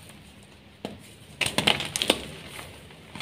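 Crumbly chalk cubes crunch and crumble as they are crushed by hand.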